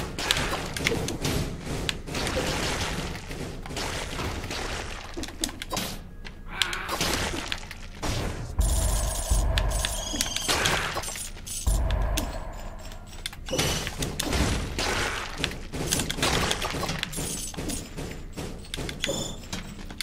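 Game weapons slash and clang in quick bursts.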